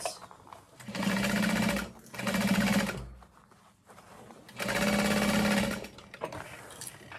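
A sewing machine runs in short bursts.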